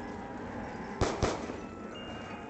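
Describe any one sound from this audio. A pistol fires two sharp shots.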